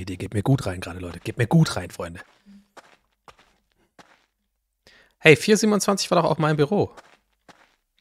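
A man speaks close to a microphone, in short bursts with animation.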